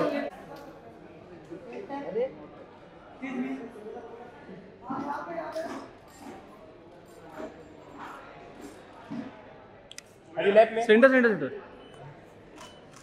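Men talk and call out loudly nearby.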